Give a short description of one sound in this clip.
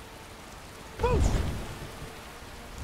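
A powerful blast booms and rushes outward.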